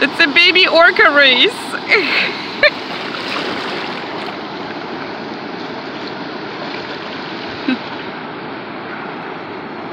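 Waves wash and break steadily onto the shore.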